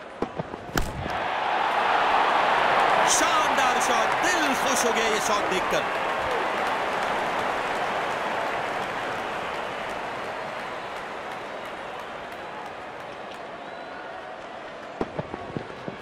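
A large stadium crowd roars and cheers, then slowly dies down.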